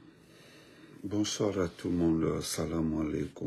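A man speaks with animation close to a phone microphone.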